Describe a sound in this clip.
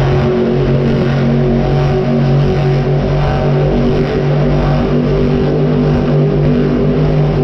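Monster truck engines roar loudly in a large echoing arena.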